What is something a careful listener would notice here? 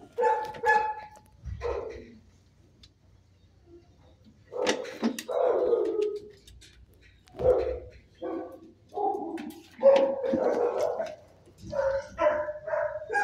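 A dog's claws tap and scrape on a hard floor.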